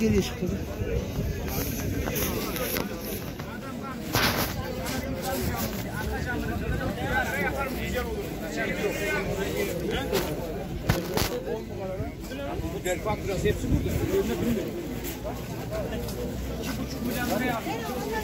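Footsteps scuff and tap on wet paving stones.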